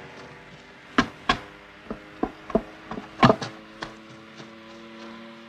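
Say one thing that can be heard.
Footsteps thud on hard ground close by.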